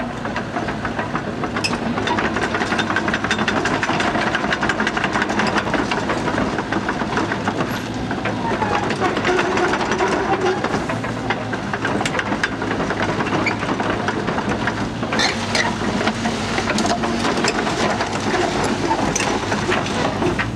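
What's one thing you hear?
Excavator tracks clank and rattle as the machine moves over gravel.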